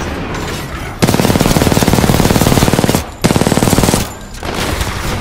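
An automatic gun fires rapid bursts.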